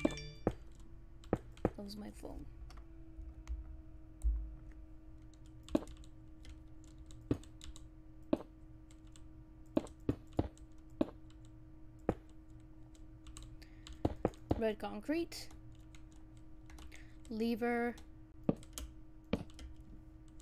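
Blocks are placed and broken with short, sharp clicks.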